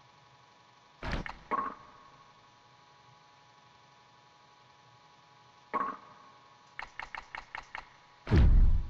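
Short electronic menu blips sound as selections change.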